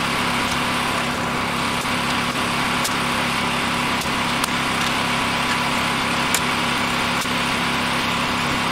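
An engine hums steadily nearby.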